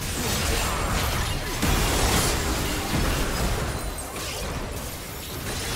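Game spell effects crackle and burst in a hectic battle.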